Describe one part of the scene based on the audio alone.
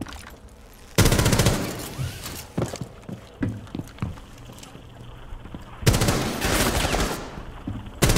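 Rapid gunshots fire in loud bursts.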